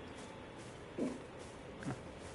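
A heavy axe blow lands with a dull thud.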